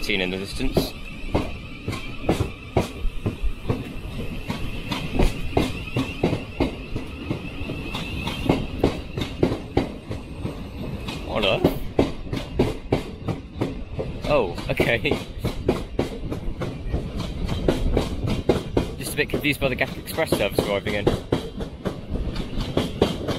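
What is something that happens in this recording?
A train rolls slowly past close by, its wheels clacking steadily over the rail joints.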